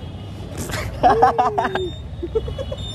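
A young man laughs loudly.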